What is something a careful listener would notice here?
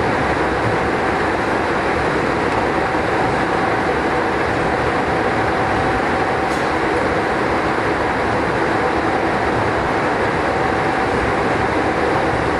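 A train rumbles steadily along the rails with a humming motor.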